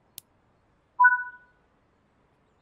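A cab warning tone beeps briefly.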